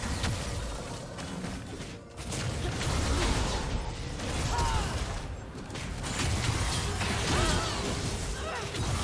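Game characters strike each other with sharp impacts.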